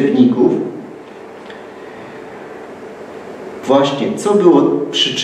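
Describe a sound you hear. A man speaks calmly and closely into a microphone, with pauses.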